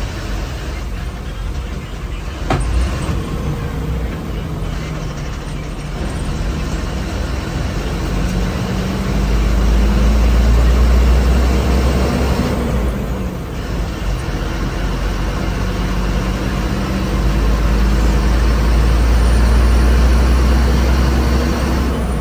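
A bus engine drones steadily while driving, rising and falling with speed.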